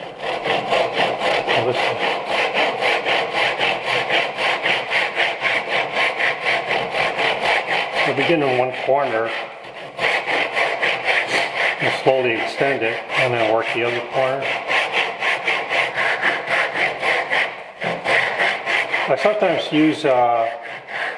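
Wood scrapes back and forth over an abrasive surface in quick, steady strokes.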